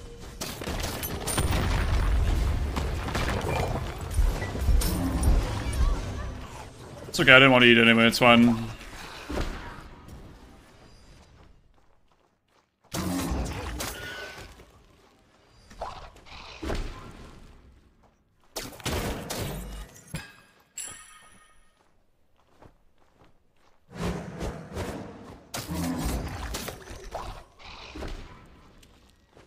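Magic spells whoosh and burst in a fast fight.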